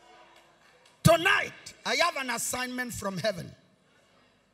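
A man preaches loudly with animation through a microphone and loudspeakers in a large echoing hall.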